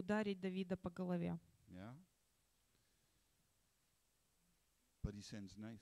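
An older man speaks calmly into a microphone, heard through a loudspeaker.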